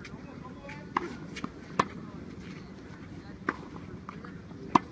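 Tennis balls are struck with rackets, popping sharply outdoors.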